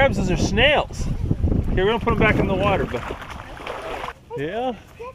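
Water splashes against a shore.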